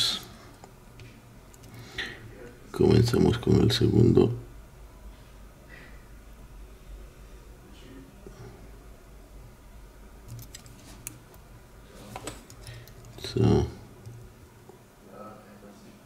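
Metal picks scrape and click softly inside a small lock.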